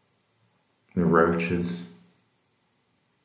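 A man speaks a few words nearby.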